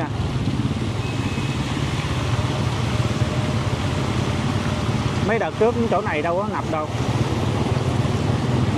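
Water splashes and sprays under motorbike tyres.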